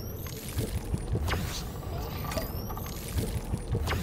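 A character gulps down a drink in loud swallows.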